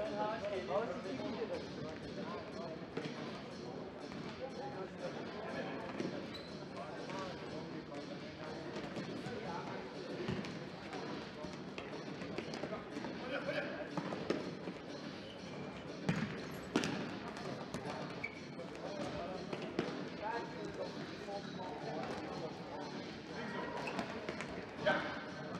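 A futsal ball is kicked hard, with a thud echoing around a large hall.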